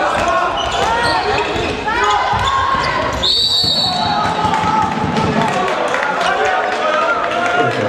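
A ball thuds as it bounces on the court.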